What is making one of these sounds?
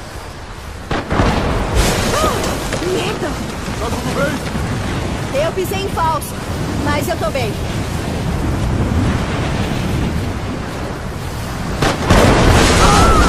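A snow avalanche rumbles and roars down a slope.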